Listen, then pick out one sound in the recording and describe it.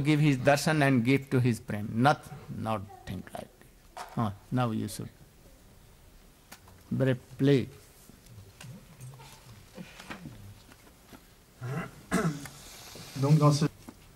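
An elderly man speaks slowly and calmly into a microphone, with pauses.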